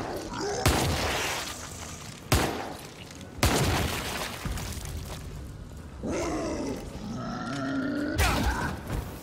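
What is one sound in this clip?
A shotgun fires loud blasts with a booming echo.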